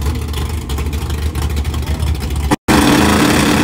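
A race car engine idles with a loud, rough rumble.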